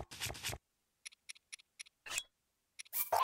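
Short soft menu clicks tick several times in quick succession.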